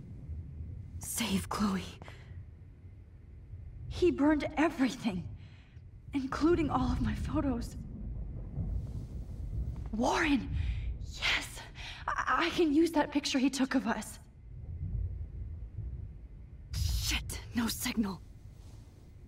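A young woman speaks in short, tense bursts.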